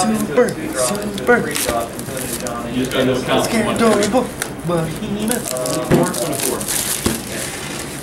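Plastic wrap crinkles as it is peeled off a box.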